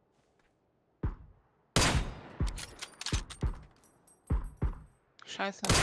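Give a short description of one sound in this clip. Rifle shots crack sharply, several in a row.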